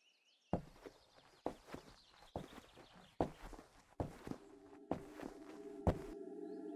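Small footsteps thud on a wooden floor.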